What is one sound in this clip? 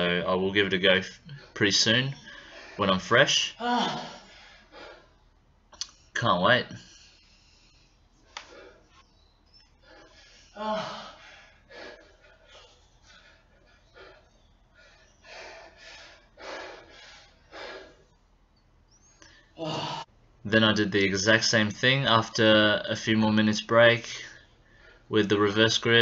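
A young man grunts and breathes hard with effort close by.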